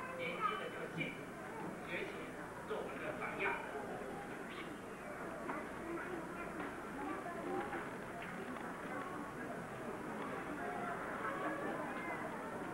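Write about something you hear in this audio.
A crowd of people chatter and murmur in an echoing room.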